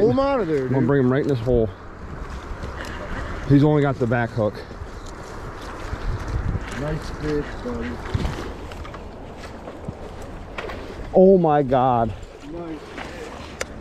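A man speaks excitedly close by.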